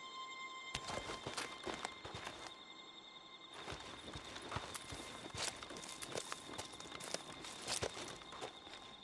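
Footsteps rustle and crunch through dry grass and brush.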